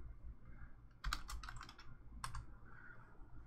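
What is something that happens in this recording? Keys clatter on a keyboard.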